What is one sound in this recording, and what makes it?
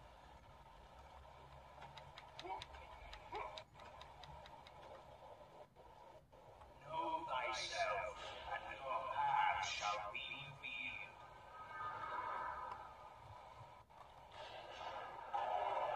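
Video game sound effects play from a tablet's small speaker.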